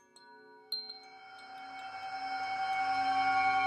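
A singing bowl hums and swells louder as a mallet rubs around its rim.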